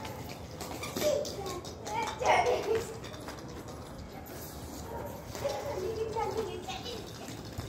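A toddler babbles.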